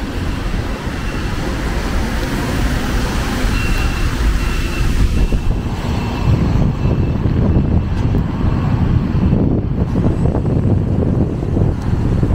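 Traffic hums and swishes along a wet street nearby.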